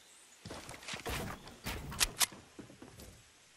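Wooden boards clatter as they are put up.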